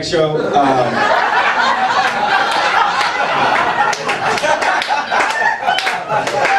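An audience cheers and claps.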